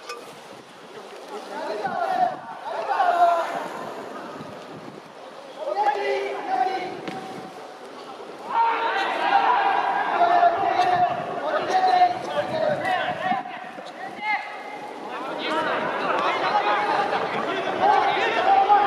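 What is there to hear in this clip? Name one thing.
A crowd in the stands chants and cheers loudly, outdoors.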